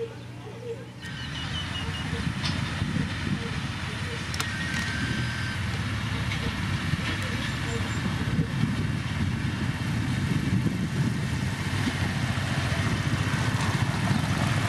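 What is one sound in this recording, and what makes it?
A heavy grader's diesel engine rumbles loudly.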